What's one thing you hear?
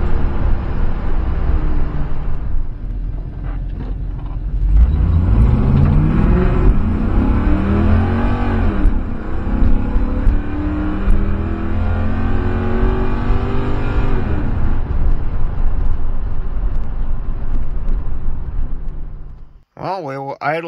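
Tyres and wind rush steadily along a road.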